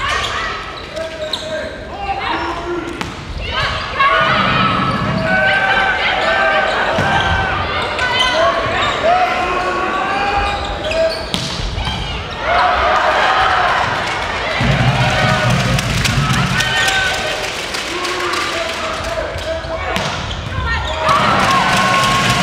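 A crowd cheers and chants loudly in a large echoing hall.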